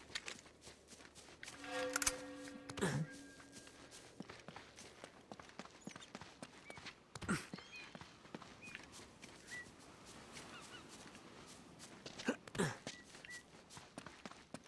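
Footsteps run quickly over grass and stone.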